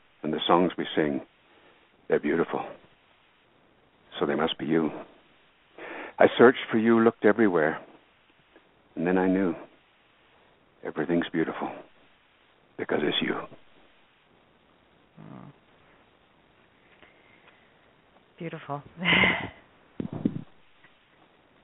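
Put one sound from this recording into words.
A man speaks calmly, in short phrases with pauses.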